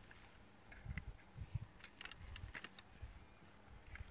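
A plastic phone mount clicks and rattles as it is adjusted by hand.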